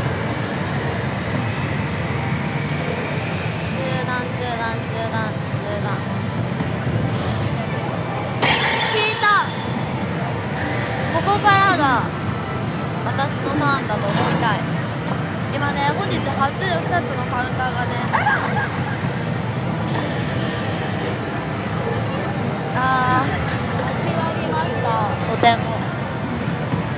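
A noisy hall hums with the steady din of many machines.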